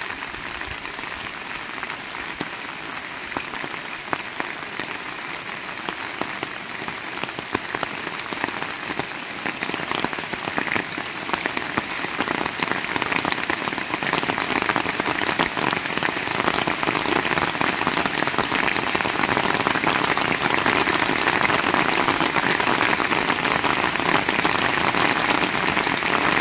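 Heavy rain pours steadily outdoors and grows louder.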